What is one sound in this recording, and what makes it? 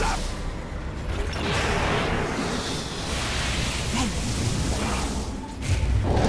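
Game spell effects crackle and whoosh during a battle.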